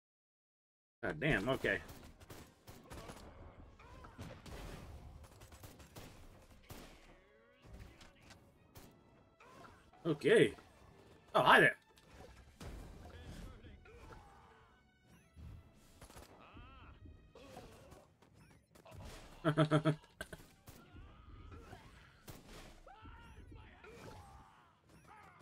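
Ray guns zap and fizz repeatedly.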